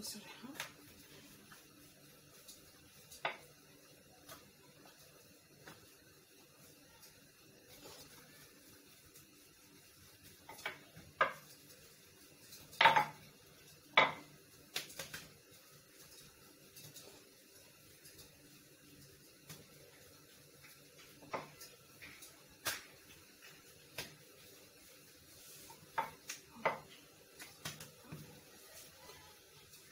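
A wooden rolling pin rolls and rumbles over dough on a stone counter.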